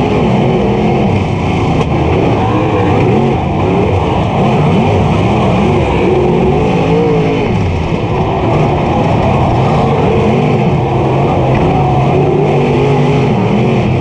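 A race car engine roars loudly, its pitch rising and falling as it revs.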